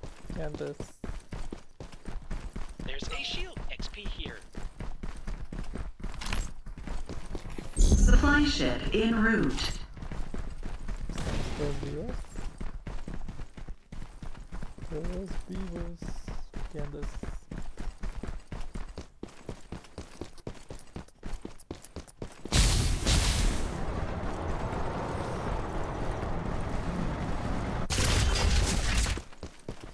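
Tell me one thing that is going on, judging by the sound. Footsteps patter quickly over dirt.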